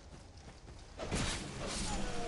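A blade strikes with a sharp clang.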